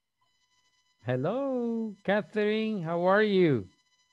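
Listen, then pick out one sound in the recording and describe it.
A man sings loudly through an online call.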